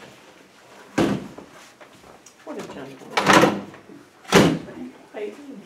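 A chair scrapes and knocks as it is moved.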